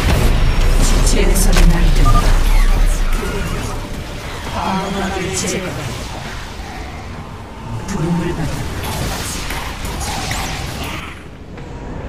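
Energy blasts and explosions crackle and boom in a battle.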